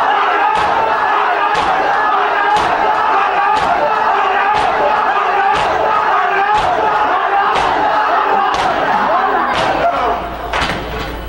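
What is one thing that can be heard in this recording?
A group of men chant together loudly.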